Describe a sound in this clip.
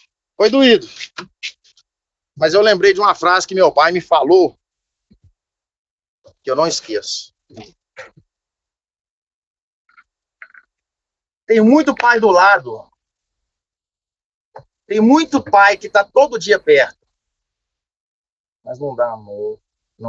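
A man talks with animation over an online call, in bursts with pauses.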